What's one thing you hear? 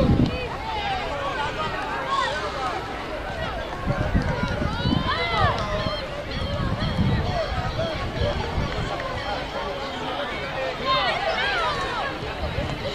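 Young boys shout and call out to each other across an open field.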